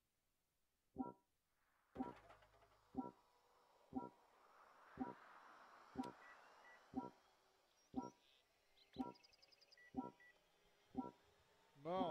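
A countdown timer beeps sharply once every second.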